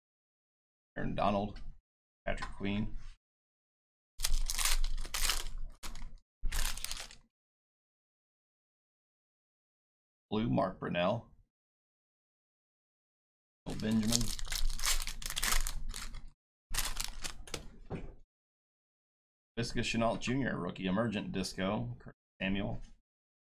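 A man talks with animation over a microphone.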